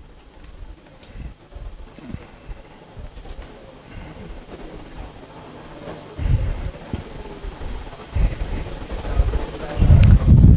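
A felt eraser rubs and squeaks across a whiteboard.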